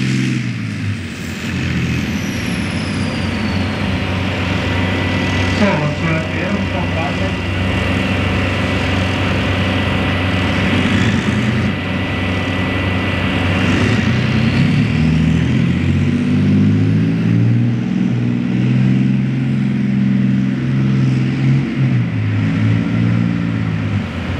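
Tank tracks clank and squeal as the tank rolls along.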